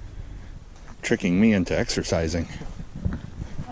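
A man talks nearby in a relaxed way.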